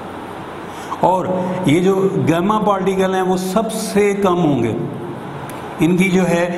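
A man speaks calmly nearby, as if lecturing.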